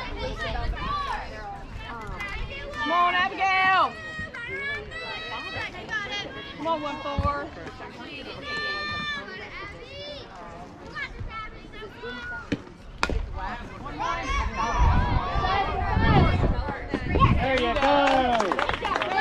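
Young girls cheer and call out loudly outdoors.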